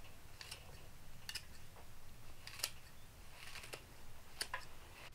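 Leaves rustle softly as they are sorted.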